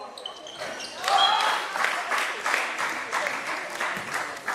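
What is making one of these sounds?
A crowd cheers and claps as players celebrate.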